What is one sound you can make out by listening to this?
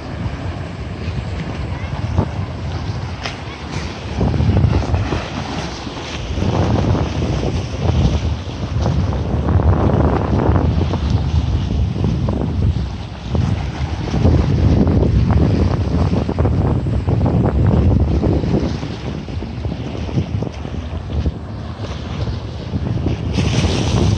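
Wind gusts rumble across the microphone outdoors.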